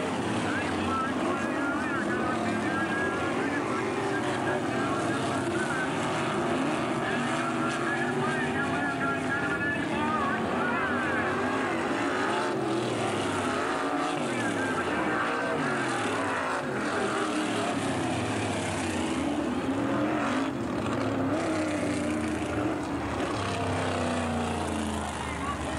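A race car engine roars and its pitch rises and falls as the car speeds along.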